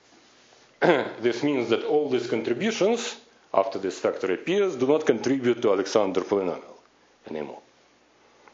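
A man lectures calmly through a microphone in a large hall.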